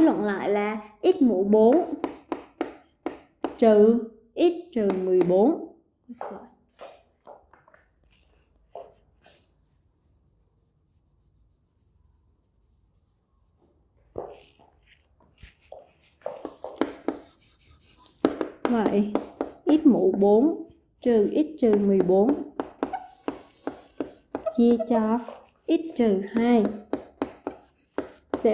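A young woman speaks calmly and clearly, as if explaining.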